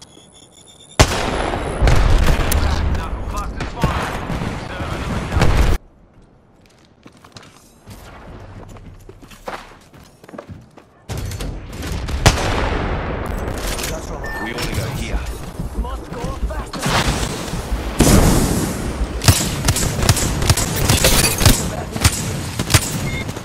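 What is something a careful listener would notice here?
Loud rifle shots crack, one after another.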